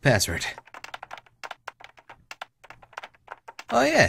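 Keys on a keyboard click quickly.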